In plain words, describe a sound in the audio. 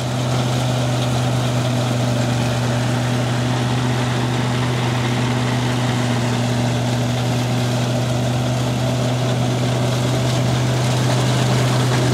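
A threshing machine whirs and rattles as it chews through dry plant stalks.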